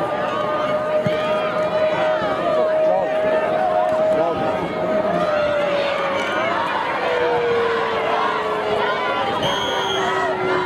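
A crowd cheers and shouts in a large outdoor stadium.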